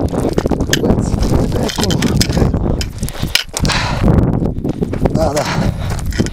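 Footsteps crunch and scrape on loose stones.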